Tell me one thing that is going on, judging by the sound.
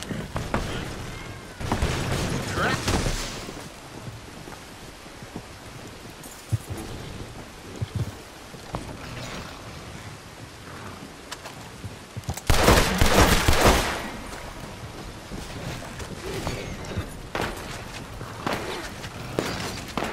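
A horse-drawn wagon rumbles along.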